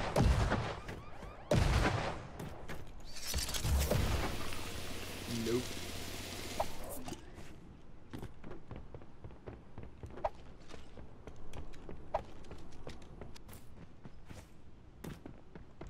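Sharp whooshing hits and clicks of game effects ring out repeatedly.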